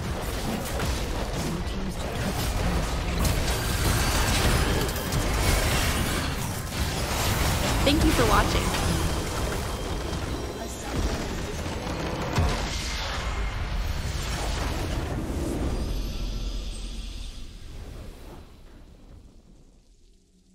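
Computer game battle effects clash, crackle and boom.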